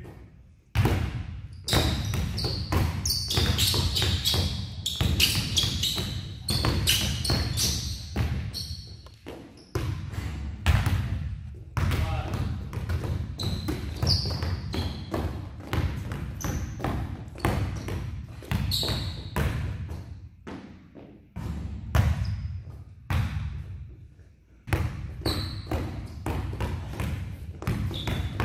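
A basketball bounces repeatedly on a hard floor in a large echoing hall.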